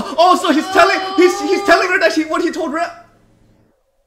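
A man exclaims loudly with excitement close by.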